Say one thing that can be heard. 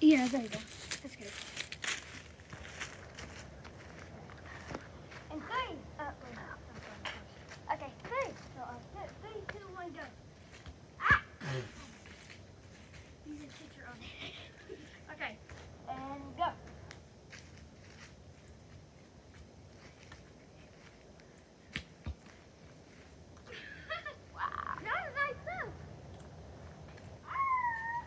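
Boys call out and talk to each other outdoors.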